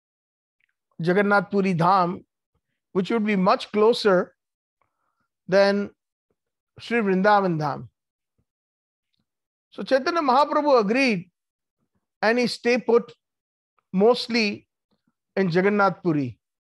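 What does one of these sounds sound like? A middle-aged man speaks calmly and deliberately into a close microphone, in short phrases with pauses.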